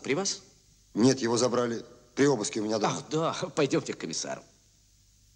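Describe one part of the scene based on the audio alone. A man speaks up close.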